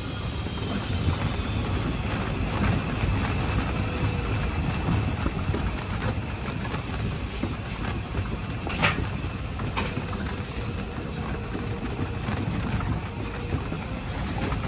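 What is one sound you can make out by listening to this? Tyres rumble and clack over wooden planks.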